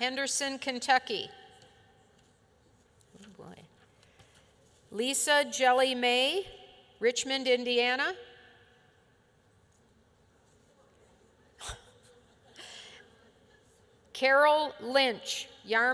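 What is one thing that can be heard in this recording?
An older woman reads aloud calmly into a microphone, with pauses.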